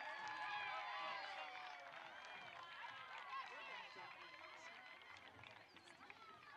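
A small crowd of spectators cheers and shouts outdoors.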